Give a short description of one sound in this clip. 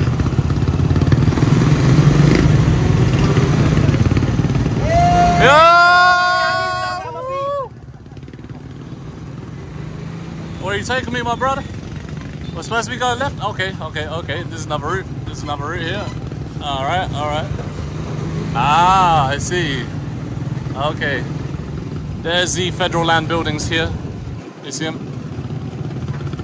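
A motor tricycle's engine rumbles steadily close by.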